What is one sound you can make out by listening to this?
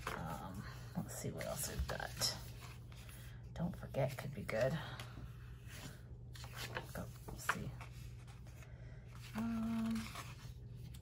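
Paper rustles and crinkles as stickers are handled.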